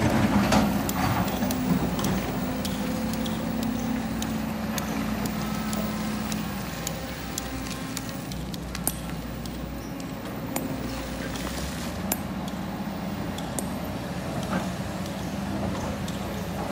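Rocks clatter and knock as an excavator bucket scrapes through them.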